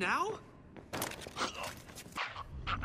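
Punches thud as two men scuffle.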